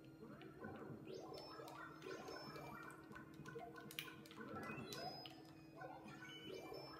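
Video game music plays with bouncy tones.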